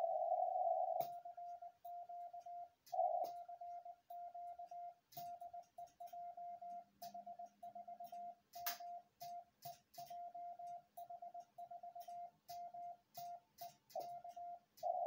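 A telegraph key clicks sharply.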